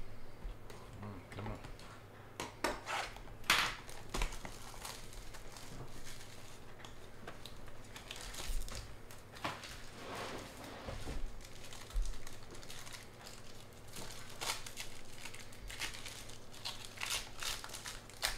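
A foil wrapper crinkles and tears as it is handled close by.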